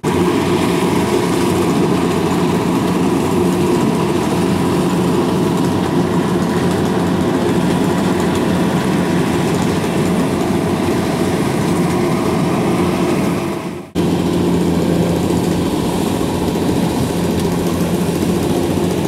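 A combine harvester's engine rumbles and whirs steadily, outdoors.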